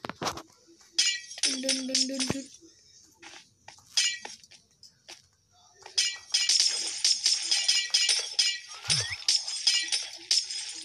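Blocks crunch and crumble as they are broken, again and again.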